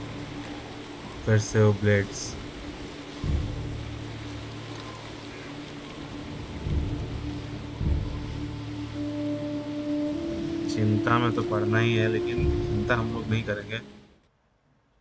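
Water flows gently nearby.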